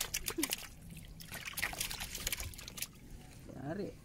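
Water splashes softly around a person wading.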